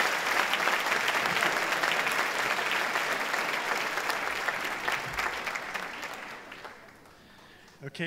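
An audience applauds in a large hall, and the clapping fades away.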